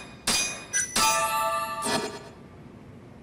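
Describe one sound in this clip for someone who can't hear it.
A brief electronic chime rings as a choice is confirmed.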